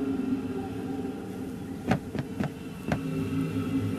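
Footsteps thud on wooden stairs and boards.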